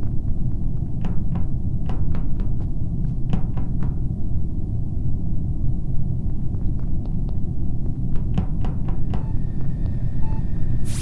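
Quick light footsteps patter on a hard floor.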